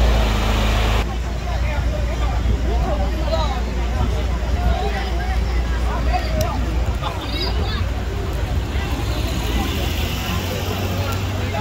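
A crowd of people chatter outdoors at a distance.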